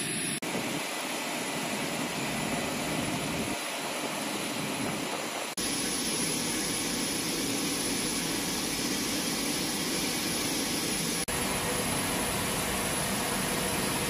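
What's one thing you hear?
Aircraft engines drone steadily, heard from inside the cabin.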